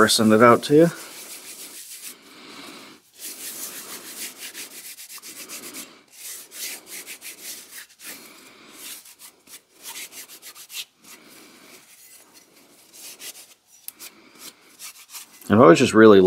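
A scouring pad scrubs against a metal axe head.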